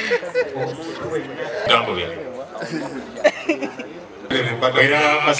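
Men talk over each other nearby amid a noisy crowd.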